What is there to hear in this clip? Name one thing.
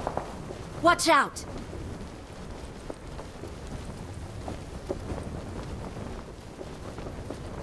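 Wind rushes steadily past a gliding parachute.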